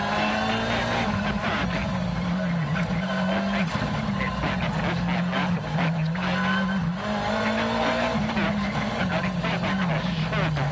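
A rally car's engine roars loudly from inside, its pitch rising and dropping with gear changes.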